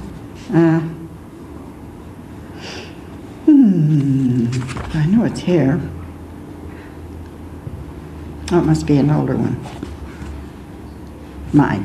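A middle-aged woman reads aloud slowly through a microphone, with pauses.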